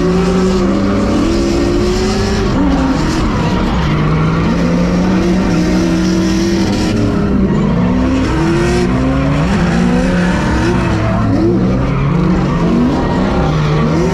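Tyres screech on the track.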